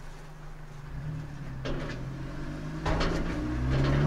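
A metal hatch on a donation bin clanks open and shut.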